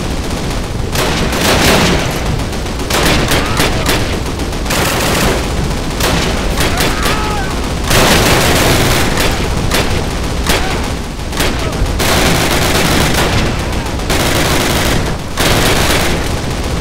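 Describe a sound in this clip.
Rifle shots crack repeatedly.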